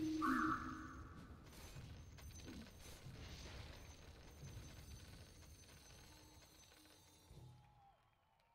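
Game battle effects clash and crackle.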